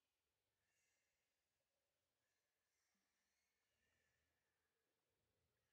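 A young man talks quietly into a headset microphone.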